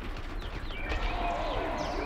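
An explosion booms with debris crashing.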